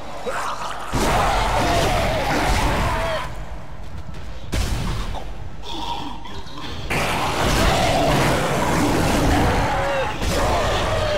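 A sci-fi energy gun fires shots.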